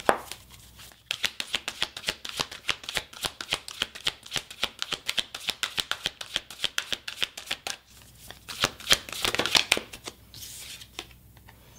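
Playing cards riffle and flap quickly as they are shuffled by hand.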